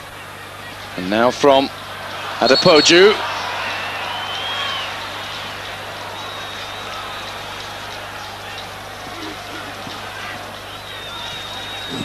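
A large crowd murmurs and roars steadily in an open stadium.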